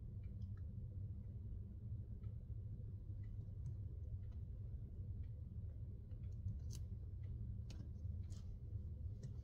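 Fingers tap and click lightly on a small cardboard frame.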